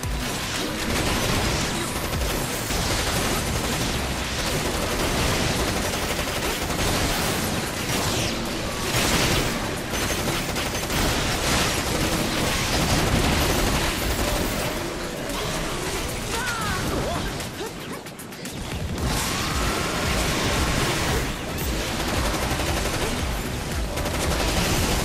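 Rapid gunfire and blasts crackle in a video game battle.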